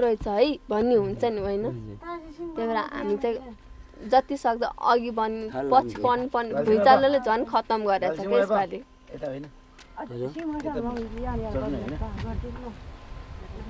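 A young woman speaks earnestly and close by.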